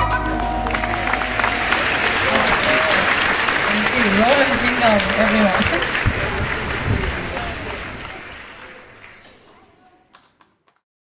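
An audience applauds and cheers, then fades away.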